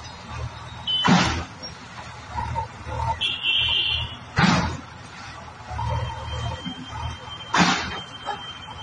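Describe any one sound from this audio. Loud bangs and crashes ring out.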